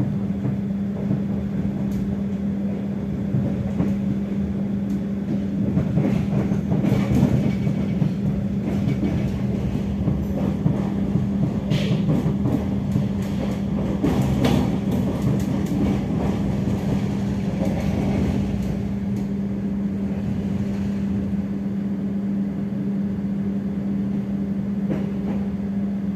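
A train rumbles steadily along the tracks, with a low hum.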